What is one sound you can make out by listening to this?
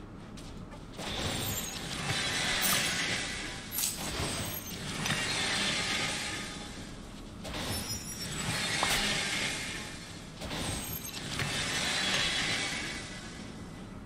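Sparkling magical chimes ring out in bursts.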